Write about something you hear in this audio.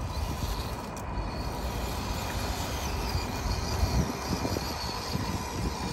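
A small electric motor whirs as a toy truck drives.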